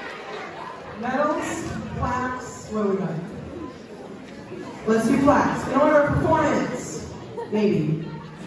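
A man announces through a loudspeaker.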